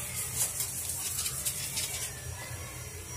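Oil sizzles and crackles softly in a pan.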